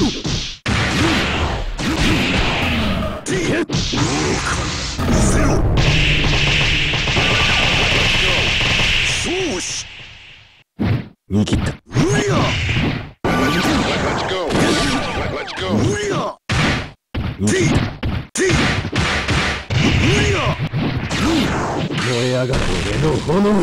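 Energy blasts whoosh and crackle.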